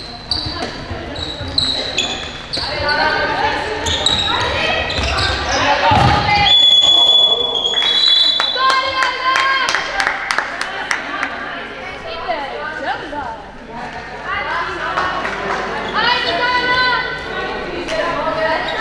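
Sports shoes squeak sharply on a hard floor in a large echoing hall.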